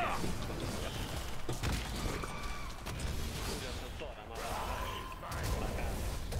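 Weapon impacts thud and clang.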